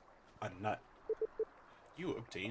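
A short bright chime plays in quick pulses.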